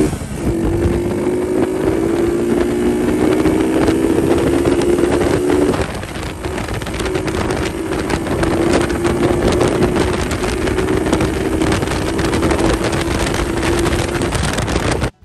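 A motorcycle engine hums steadily while riding, rising and dropping slightly in pitch.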